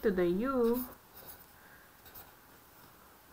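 A marker squeaks and scratches softly on paper.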